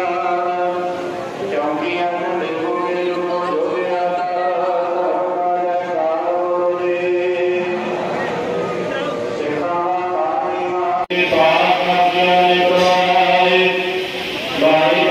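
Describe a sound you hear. A large crowd sings together in a large echoing hall.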